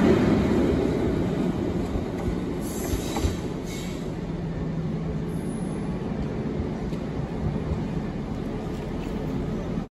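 A diesel locomotive rumbles past close by and fades into the distance.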